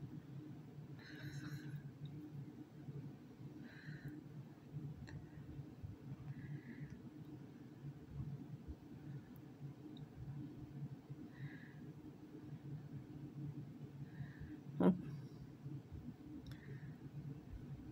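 A cat meows softly now and then.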